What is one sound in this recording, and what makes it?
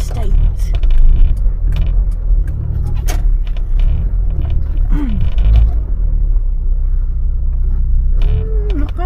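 A car engine rumbles low and steady while driving slowly.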